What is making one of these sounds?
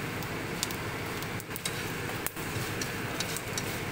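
Chopsticks scrape against a frying pan.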